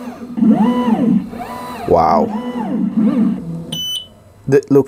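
A laser cutter's motors whir as its head moves.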